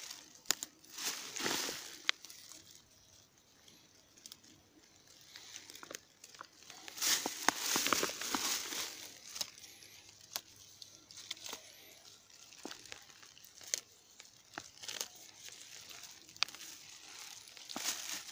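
Dry twigs and grass rustle and snap close by.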